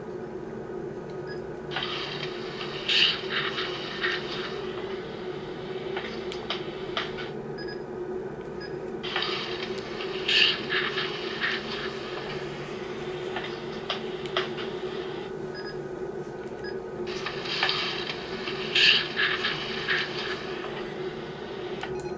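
A button clicks on a small device.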